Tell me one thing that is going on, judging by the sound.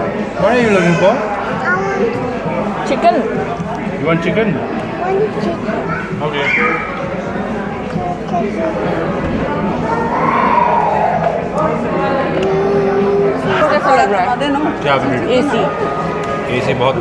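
Several adults talk with animation close by.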